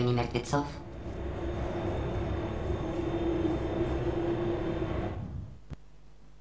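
An elevator hums steadily as it rises.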